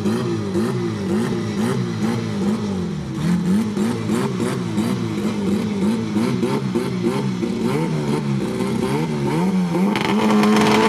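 A car engine revs in sharp bursts while idling on the line.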